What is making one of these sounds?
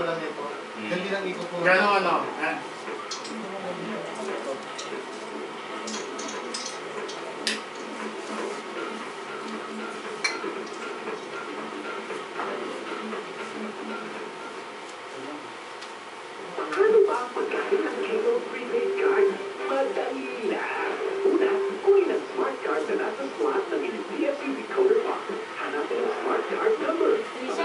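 Several men and women talk and laugh together close by.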